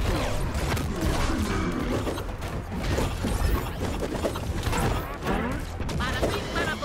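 Cartoon punches and blows land with quick thumps and whooshes.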